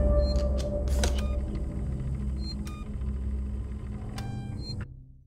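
A button on a panel clicks.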